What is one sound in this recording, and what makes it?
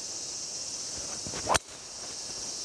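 A golf club whooshes and strikes a ball with a sharp crack.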